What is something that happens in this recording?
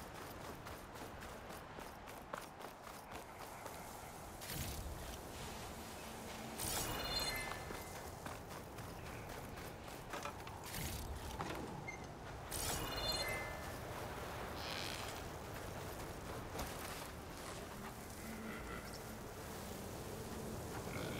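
Strong wind blows steadily through a sandstorm.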